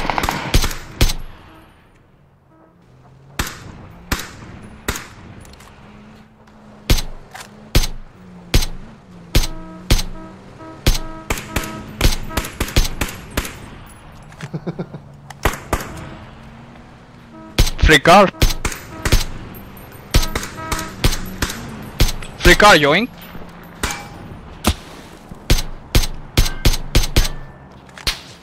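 Rifle shots ring out one after another, sharp and echoing.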